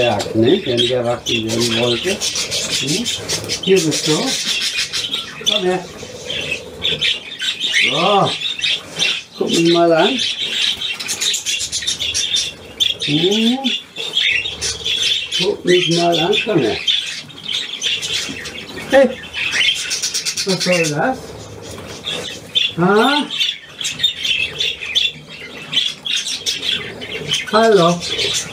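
Budgerigars chatter and warble.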